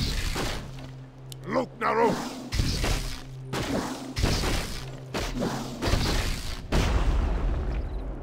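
A fiery explosion bursts.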